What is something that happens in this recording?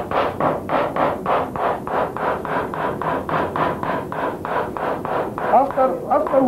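A wooden mallet taps rapidly and steadily on a stick against a board.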